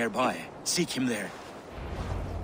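A man with a deep voice speaks calmly, close by.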